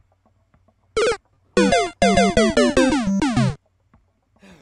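A short electronic video game jingle plays with falling notes.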